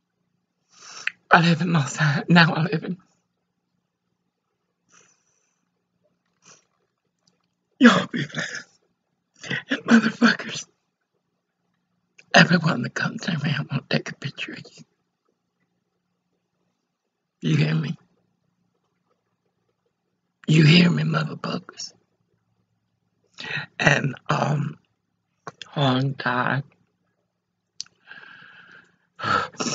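An elderly woman speaks close to a microphone in short, emotional bursts with long pauses.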